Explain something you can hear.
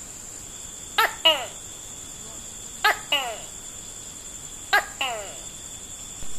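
A gecko gives short, sharp clicking chirps in pairs.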